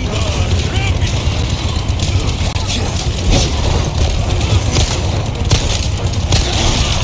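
A chainsaw engine roars and rattles.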